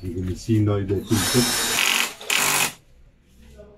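A cordless drill whirs into a wall.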